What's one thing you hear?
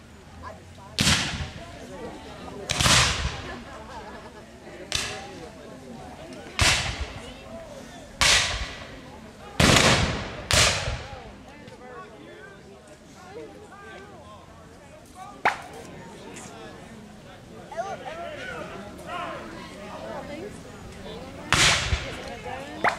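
Muskets fire loud single shots outdoors, echoing off trees.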